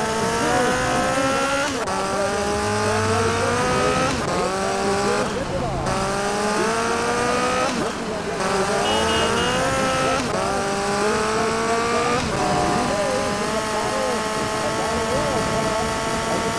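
A motorcycle engine revs up again and again as it shifts through gears.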